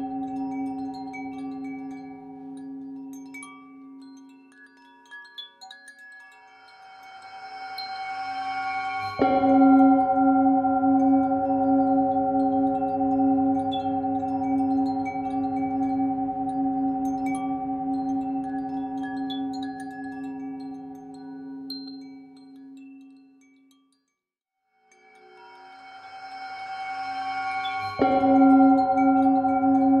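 A singing bowl rings with a steady, humming tone that swells and fades.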